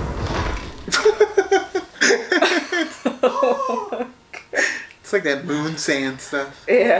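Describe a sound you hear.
A young man laughs and talks close by.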